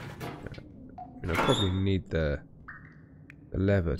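A metal locker door creaks open.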